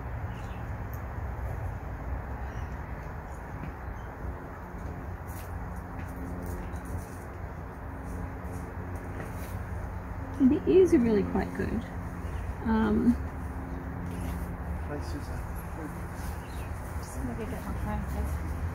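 Fingers rustle softly through a small animal's fur.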